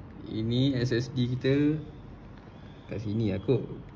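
A small circuit card clicks into a slot.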